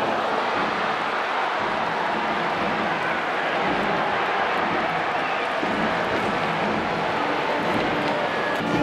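A large crowd cheers and chatters steadily in a stadium.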